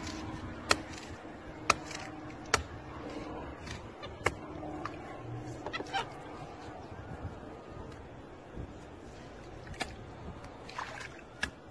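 A small monkey splashes and rubs wet cloth in soapy water.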